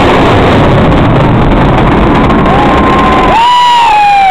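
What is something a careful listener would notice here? Jet planes roar loudly overhead.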